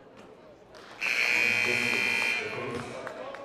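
A buzzer blares loudly in a large echoing gym.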